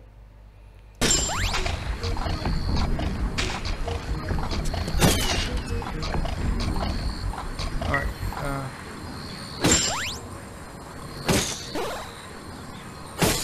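An arrow whooshes through the air after a bowstring is released.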